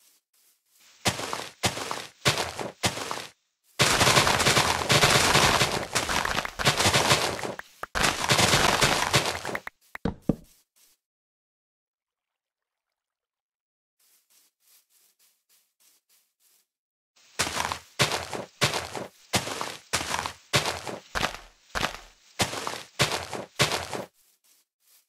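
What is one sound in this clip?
Leaves rustle and crunch as they are broken, in quick repeated bursts.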